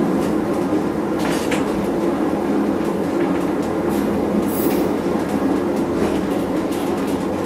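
Train wheels clack and squeal on the track.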